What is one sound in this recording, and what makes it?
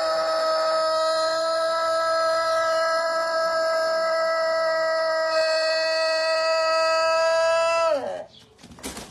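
A rooster crows with a long, steady, drawn-out call.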